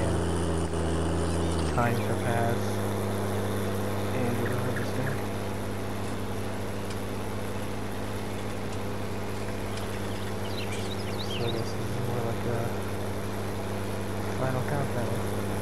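A tractor engine hums steadily as it drives across a field.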